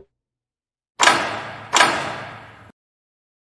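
Two heavy blows land, each with a loud crash that rings out.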